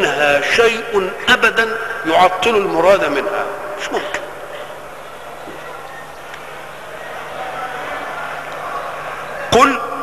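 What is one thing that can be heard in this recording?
An elderly man chants melodically into a microphone, heard through loudspeakers in a large echoing hall.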